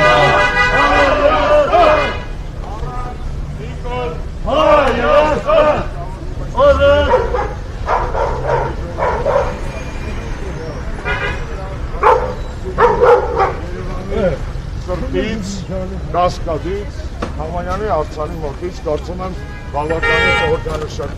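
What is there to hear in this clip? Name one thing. Several men and women talk and shout outdoors, close by.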